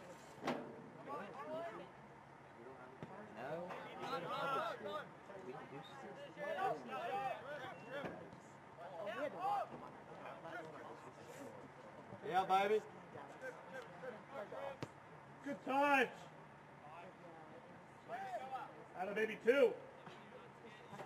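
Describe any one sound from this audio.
Players shout to each other across an open field outdoors.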